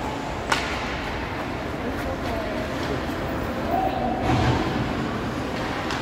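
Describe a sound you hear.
A hockey stick slaps a puck.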